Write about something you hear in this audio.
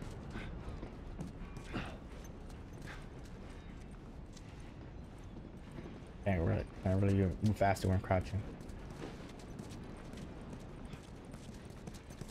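A man's footsteps scuff across hard ground.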